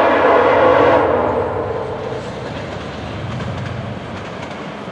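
A train rolls by with a low rumble.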